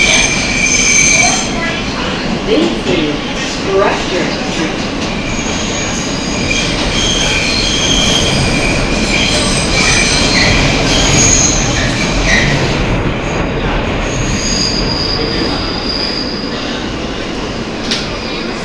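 Train wheels screech against the rails.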